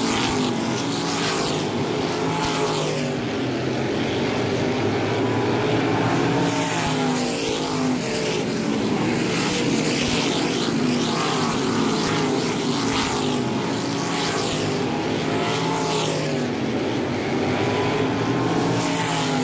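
Racing car engines roar and whine loudly as they speed around a track.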